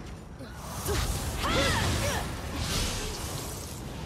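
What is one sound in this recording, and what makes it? An explosion bursts with crackling sparks in a video game.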